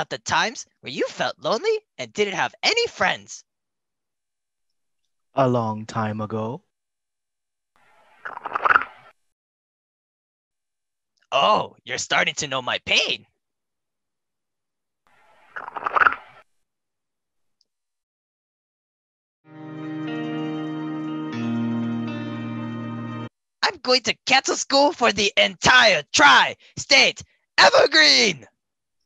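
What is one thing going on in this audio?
A man speaks angrily and with animation, close up.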